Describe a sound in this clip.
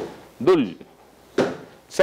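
A foot thuds against a kick pad.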